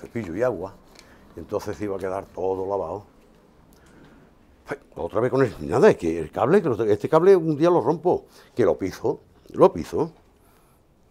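An elderly man talks calmly and close by into a microphone.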